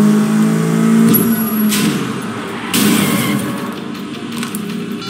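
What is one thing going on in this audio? A car engine hums steadily, then drops in pitch.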